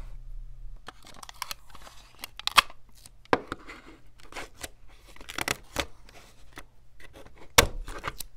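Tape is pulled and peeled off a roll with a sticky crackle.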